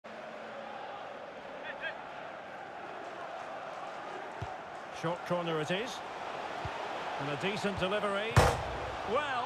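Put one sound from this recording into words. A stadium crowd roars and murmurs steadily.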